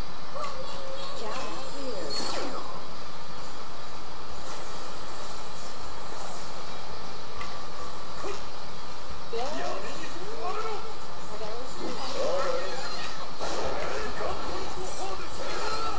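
Punches and sword slashes crack in quick bursts from a small speaker.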